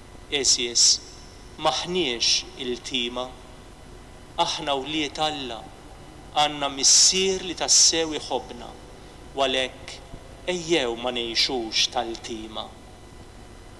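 A man speaks calmly through a microphone, echoing in a large hall.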